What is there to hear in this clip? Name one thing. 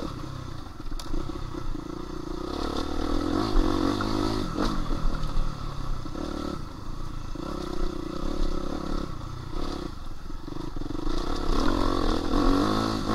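Tyres crunch and rattle over a bumpy dirt trail.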